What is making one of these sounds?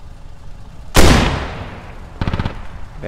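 A heavy gun fires with a sudden loud boom that rolls away.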